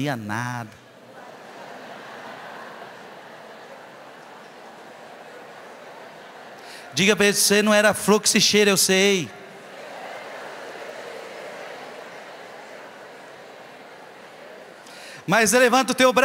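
A large audience murmurs softly.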